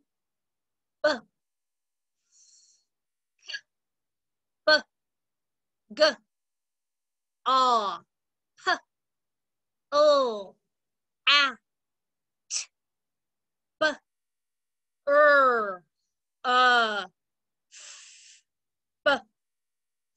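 A woman sounds out short letter sounds one at a time through a microphone, with pauses between them.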